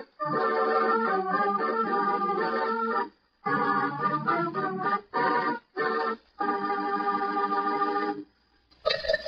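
An old radio plays music through its speaker, sounding tinny and thin.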